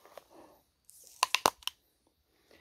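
A man bites into a crisp fruit with a crunch.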